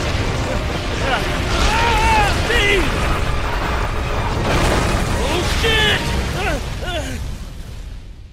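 A man screams loudly while falling.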